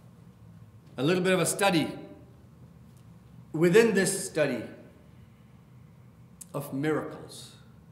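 A middle-aged man speaks calmly into a microphone in short bursts with pauses.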